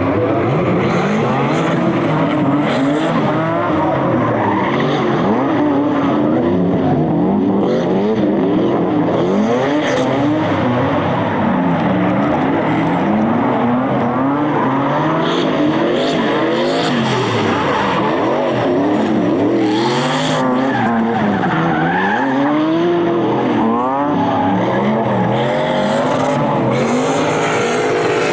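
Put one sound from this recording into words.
Tyres squeal on the track.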